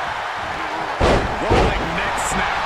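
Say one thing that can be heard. A heavy body slams onto the mat with loud thuds.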